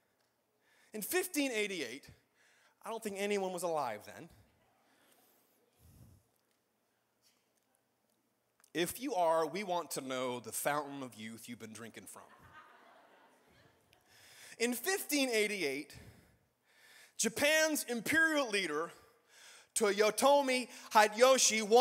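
A man speaks into a microphone with pauses, heard through a loudspeaker in a large hall.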